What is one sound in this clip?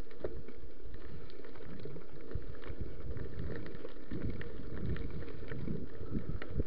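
Bicycle tyres rumble and rattle over a bumpy dirt trail.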